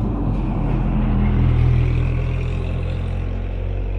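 A pickup truck drives past with a low engine rumble.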